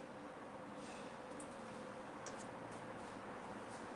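A man's bare feet pad softly on a hard floor.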